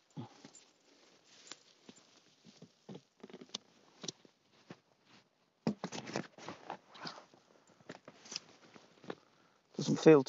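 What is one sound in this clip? Fabric rustles as a man sits into a hammock.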